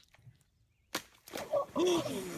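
Water splashes loudly as a person falls in.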